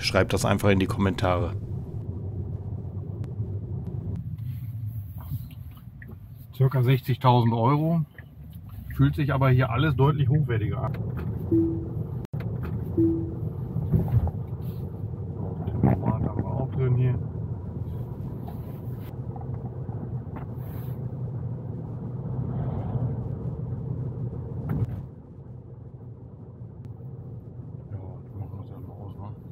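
A car rolls along the road with a steady low rumble inside the cabin.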